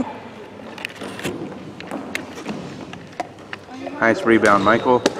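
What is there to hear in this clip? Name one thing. Basketballs bounce on a hard floor in an echoing gym.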